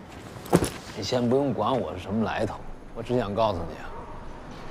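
A man answers loudly, close by.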